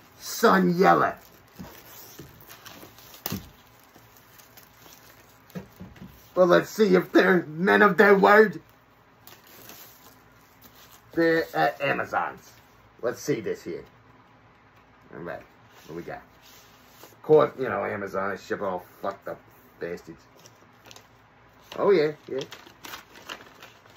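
Cardboard rustles as a package is handled.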